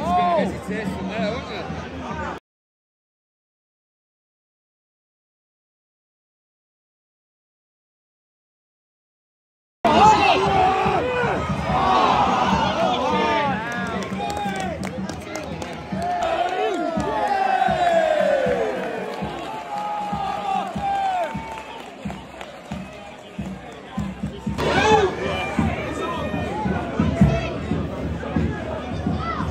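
A large crowd of football fans sings and chants loudly outdoors.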